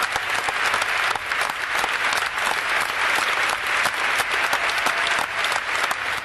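An acoustic guitar is strummed.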